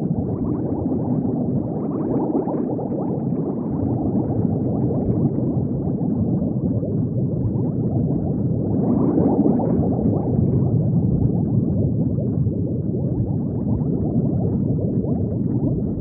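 Bubbles gurgle and burble steadily underwater.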